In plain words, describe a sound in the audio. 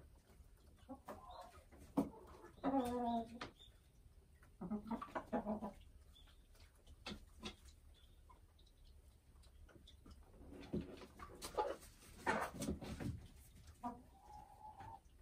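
A hen clucks and croons softly close by.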